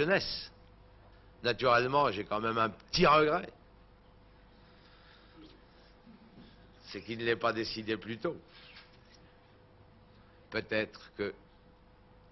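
A middle-aged man speaks into a microphone in bursts, with pauses.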